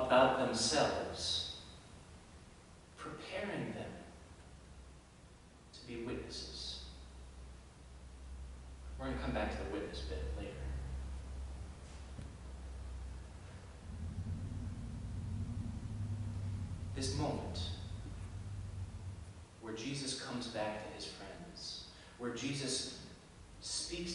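A man speaks calmly through a microphone, echoing in a large hall.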